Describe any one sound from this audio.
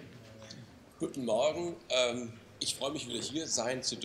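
A young man speaks calmly into a microphone in a large hall.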